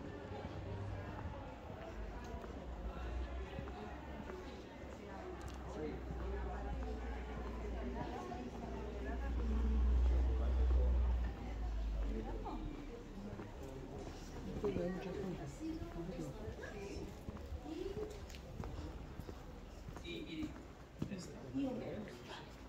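Several adults talk nearby.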